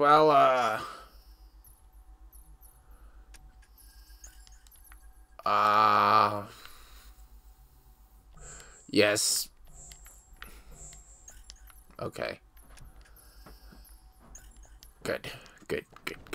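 Soft electronic clicks and beeps sound as menu options are selected.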